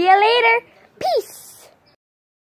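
A young girl talks, close by.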